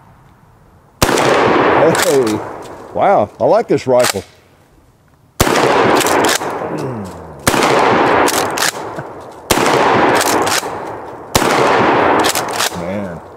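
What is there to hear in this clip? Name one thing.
A shotgun fires loud blasts that echo outdoors.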